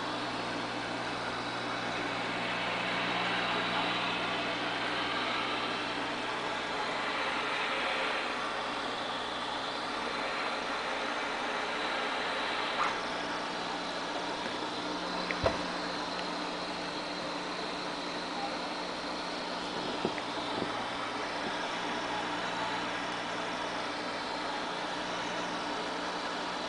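Water bubbles and hisses steadily from an aquarium pump.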